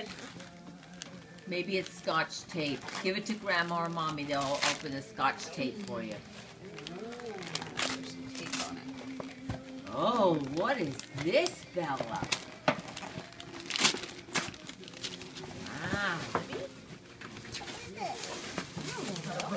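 Wrapping paper rustles and tears as a small child opens a present.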